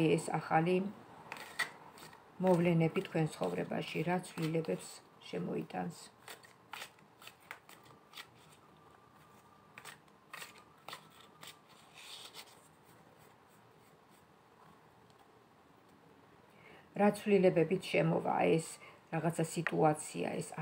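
Playing cards riffle and tap as they are shuffled by hand.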